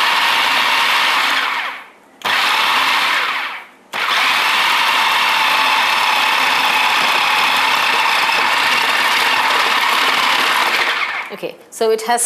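A blender whirs loudly in short bursts.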